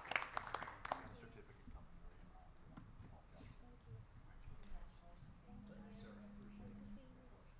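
A small crowd murmurs and chatters.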